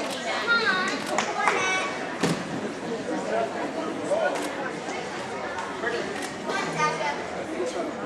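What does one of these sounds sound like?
Children shout and squeal excitedly.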